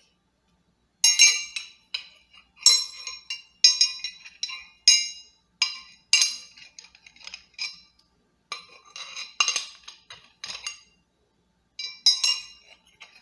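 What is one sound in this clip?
Metal tubes clink and tap together close up.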